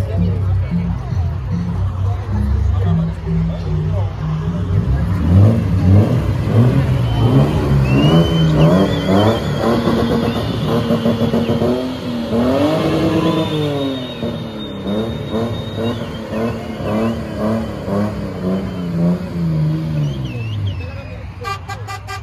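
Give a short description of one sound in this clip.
A car engine idles, then revs up and down loudly.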